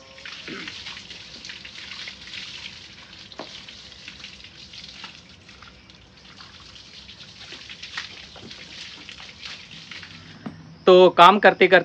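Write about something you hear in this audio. Water sprays from a hose and splashes onto an animal.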